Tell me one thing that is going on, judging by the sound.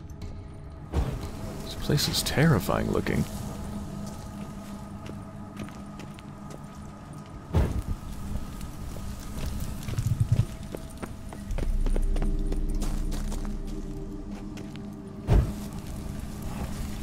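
A fire flares up with a whoosh and crackles.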